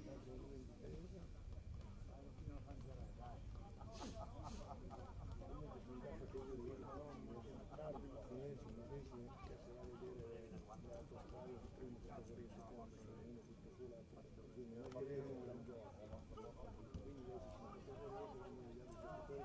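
Young men shout and call to each other from a distance outdoors.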